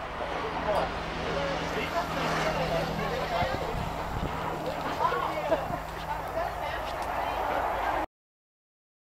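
A crowd of people chatter at a distance outdoors.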